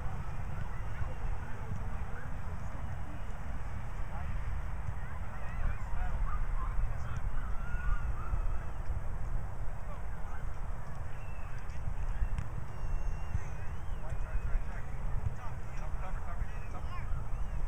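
Wind rumbles across an open outdoor field.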